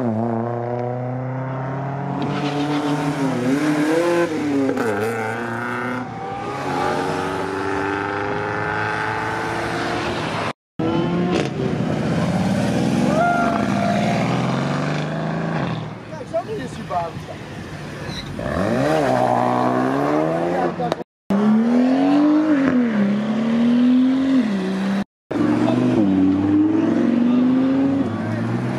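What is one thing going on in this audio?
Loud car engines rev and roar close by, their pitch rising and falling.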